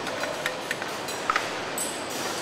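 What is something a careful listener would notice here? Metal parts clink and knock as a worker handles a machine.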